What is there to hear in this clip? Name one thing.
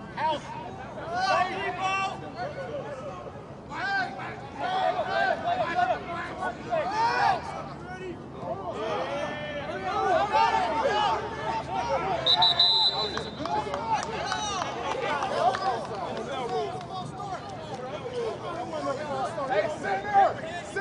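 A crowd of young men shouts and chatters close by outdoors.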